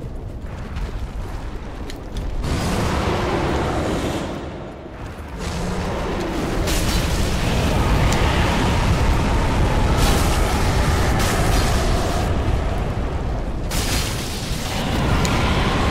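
A huge creature growls.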